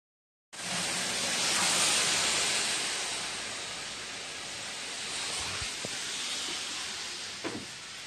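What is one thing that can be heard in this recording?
Wind and falling snow hiss outdoors.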